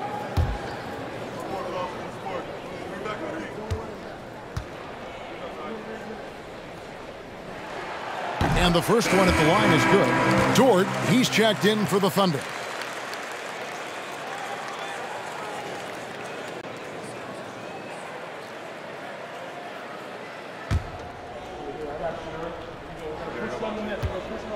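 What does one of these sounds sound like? A large crowd murmurs in an echoing arena.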